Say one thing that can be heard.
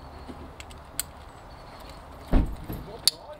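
A small metal clip clicks a few times.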